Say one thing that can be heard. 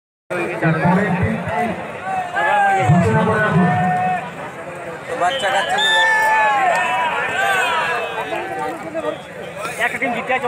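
Several young men shout and call out to one another.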